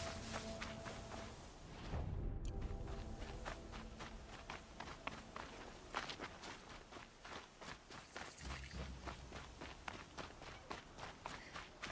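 Footsteps crunch on rocky ground at a brisk pace.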